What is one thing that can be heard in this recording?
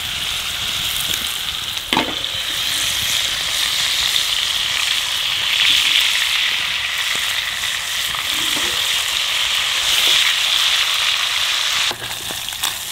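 Meat sizzles loudly in a frying pan.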